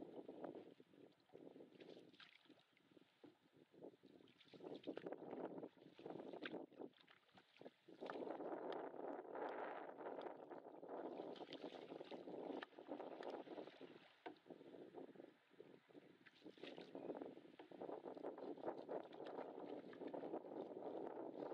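Water splashes and laps against a small boat's hull.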